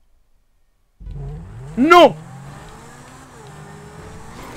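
A sports car engine hums steadily as the car drives.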